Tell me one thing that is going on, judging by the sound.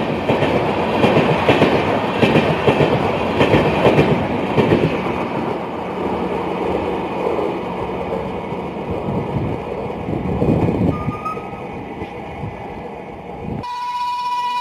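A train rolls past close by, its wheels clattering on the rails and slowly fading into the distance.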